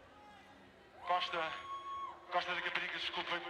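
A man sings loudly into a microphone over loudspeakers.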